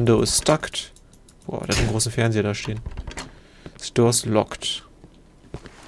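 A locked door rattles in its frame.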